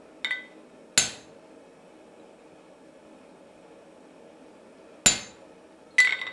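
A hammer strikes metal on an anvil with sharp ringing clangs.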